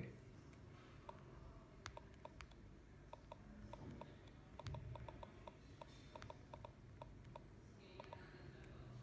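Soft clicks sound as fingers type on a phone keyboard.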